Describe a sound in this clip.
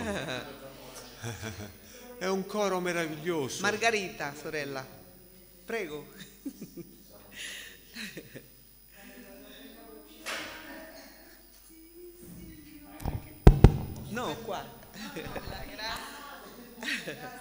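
A middle-aged man speaks with animation through a microphone in an echoing hall.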